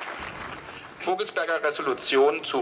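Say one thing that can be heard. A young man speaks through a microphone.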